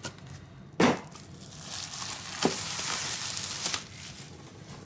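Plastic wrap crinkles and rustles as it is pulled off.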